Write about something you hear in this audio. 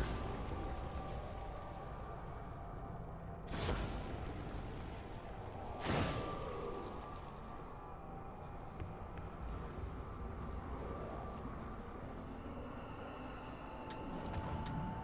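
Zombies groan and snarl close by.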